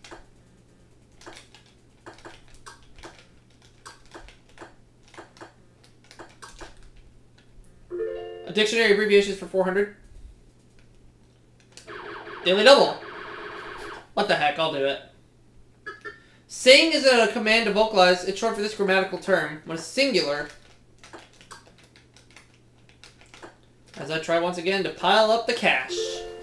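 Short electronic blips tick from a video game as letters are picked.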